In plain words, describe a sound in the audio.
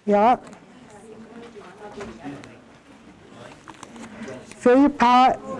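An older woman speaks calmly from across a room.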